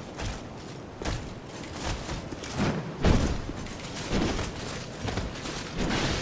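Heavy blows thud.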